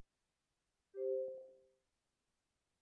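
A short electronic chime sounds as a menu item is selected.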